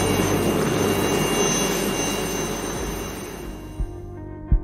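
A helicopter's rotor roars loudly close by.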